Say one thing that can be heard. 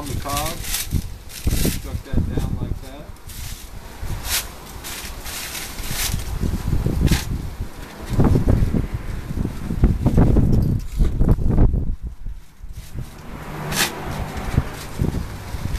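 Corn husks rustle and tear as they are pulled off.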